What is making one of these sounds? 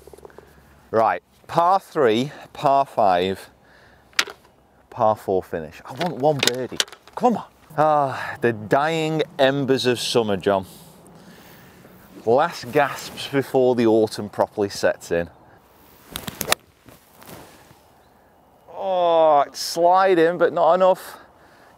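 A man talks with animation into a clip-on microphone, outdoors.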